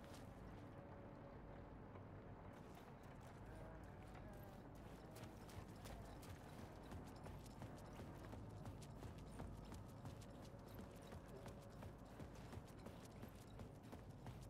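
Footsteps tread slowly on a hard floor in a quiet, echoing space.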